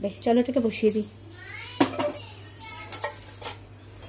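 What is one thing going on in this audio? A metal pan clanks down onto a stove.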